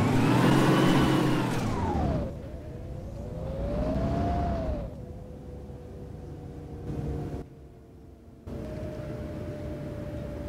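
A bus engine revs and whines, rising and falling in pitch as it speeds up and slows down.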